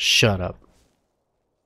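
A man close to a microphone lets out a short, loud exclamation that slides downward in pitch.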